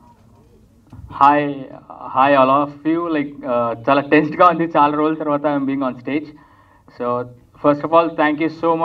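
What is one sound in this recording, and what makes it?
A young man speaks calmly into a microphone over loudspeakers.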